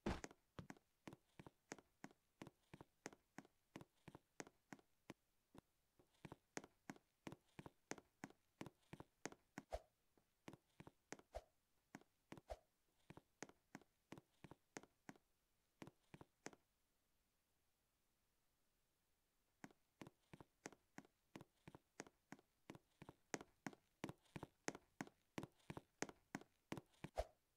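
Quick, light footsteps tap steadily on a hard surface.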